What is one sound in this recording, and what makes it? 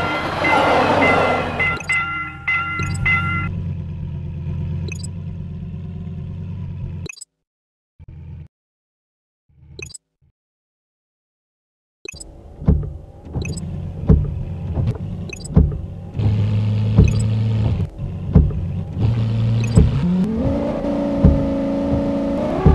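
A car engine hums and revs up.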